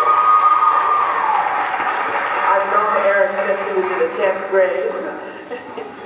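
A large choir sings in a big echoing hall.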